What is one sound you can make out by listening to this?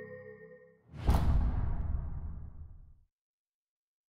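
A deep magical whoosh swells and slowly fades away.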